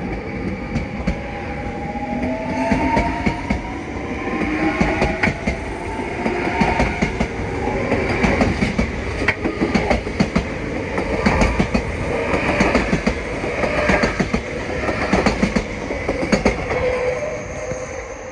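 A train rolls past close by, its wheels clacking in a steady rhythm.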